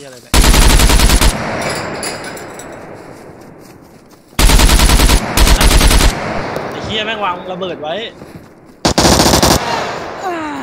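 A rifle fires rapid bursts of automatic fire.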